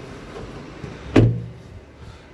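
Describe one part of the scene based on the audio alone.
A hand pats a car's metal body with a dull thud.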